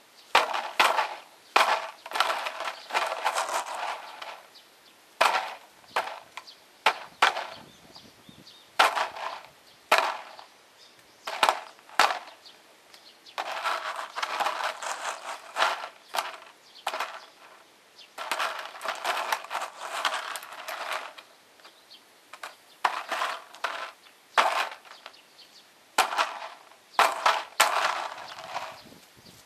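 A crow caws loudly and repeatedly nearby.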